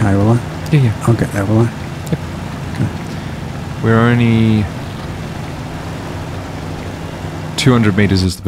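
A truck engine rumbles steadily as it climbs over rough ground.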